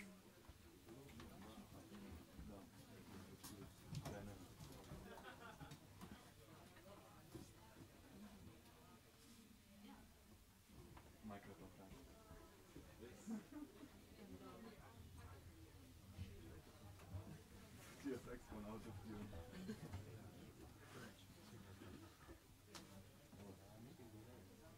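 A small jazz band plays.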